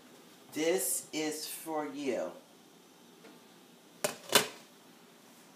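A glass pot lid clinks as it is lifted and set down.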